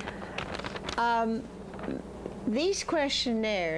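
An elderly woman speaks with animation close to a microphone.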